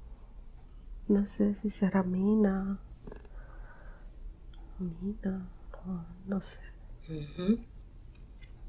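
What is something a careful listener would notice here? A young woman moans and whimpers close by in her sleep.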